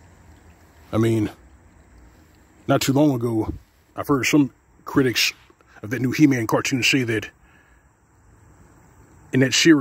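Shallow water trickles gently over stones.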